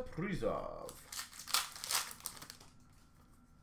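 Plastic card cases clatter and rustle as they are handled.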